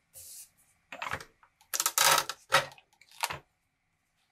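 A metal press lever clicks and clunks down.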